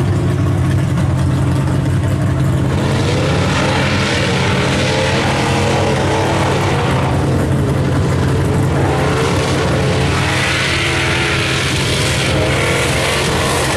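A truck engine roars loudly, revving up and down.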